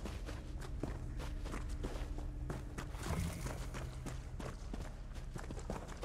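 Footsteps patter softly on the ground.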